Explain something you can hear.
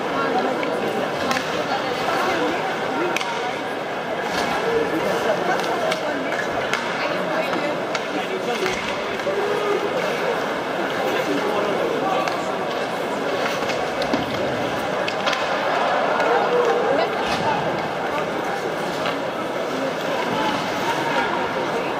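Hockey sticks strike a puck with sharp clacks.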